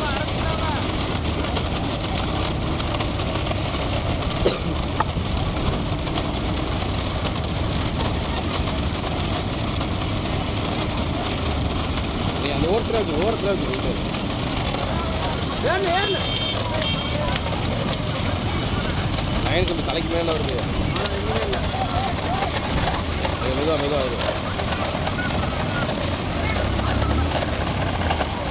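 Cart wheels rumble over a paved road.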